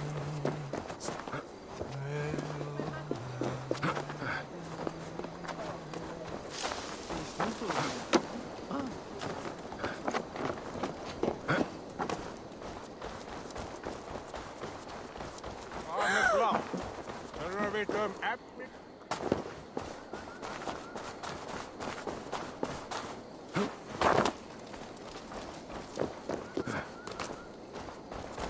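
Footsteps crunch on dirt and wooden boards.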